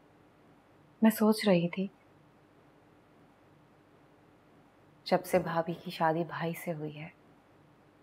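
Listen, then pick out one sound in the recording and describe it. A young woman speaks quietly and tensely, close by.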